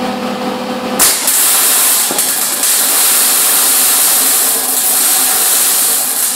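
A welding arc crackles and hisses steadily.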